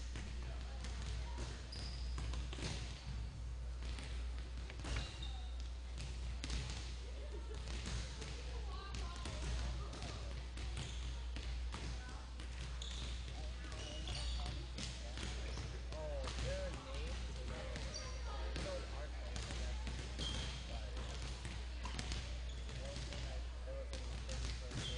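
A volleyball is struck and thuds repeatedly in a large echoing gym.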